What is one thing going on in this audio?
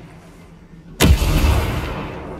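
A gun fires a loud shot.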